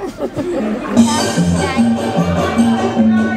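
Children in an audience laugh.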